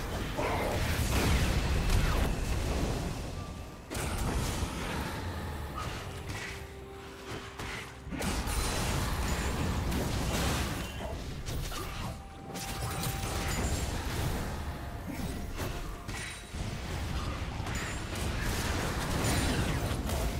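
Fiery magic blasts whoosh and burst.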